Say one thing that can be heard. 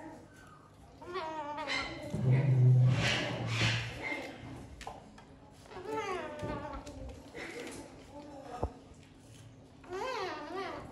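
A parrot chatters and squawks nearby.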